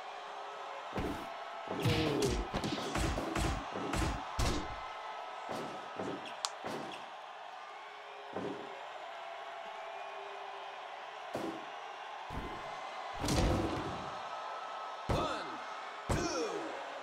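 Heavy thuds of blows and body slams land again and again in a wrestling game.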